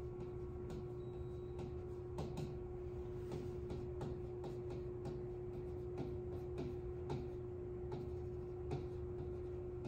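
A marker taps on a glass board.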